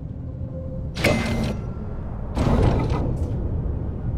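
A wooden panel slides and thuds open.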